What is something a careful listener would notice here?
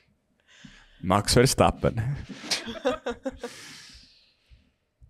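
A young man laughs heartily into a microphone.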